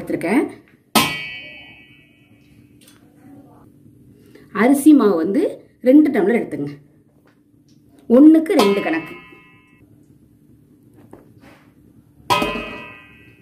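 A metal cup clinks against a steel bowl with a ringing sound.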